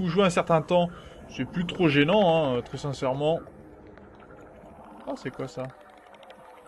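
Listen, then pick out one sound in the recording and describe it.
A handheld scanner hums and whirs underwater.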